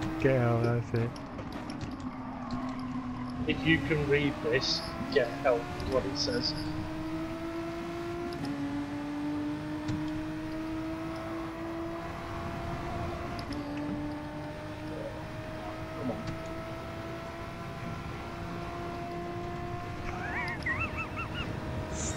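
A racing car engine roars, climbing steadily in pitch and dropping briefly at each gear change.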